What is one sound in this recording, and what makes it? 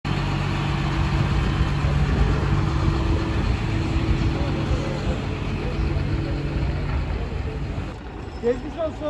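A heavy excavator engine rumbles steadily close by.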